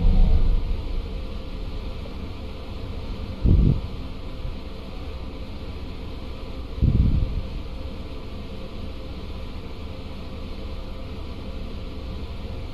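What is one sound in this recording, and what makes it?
A bus engine slows down to a quieter idle.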